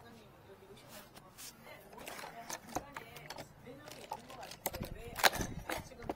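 Items rustle and knock inside a case.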